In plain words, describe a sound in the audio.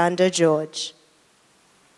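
A young woman speaks briefly through a microphone.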